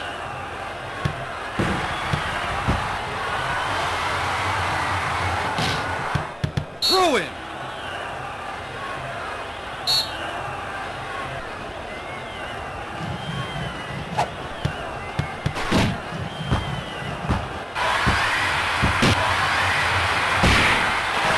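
A ball is kicked with dull thumps.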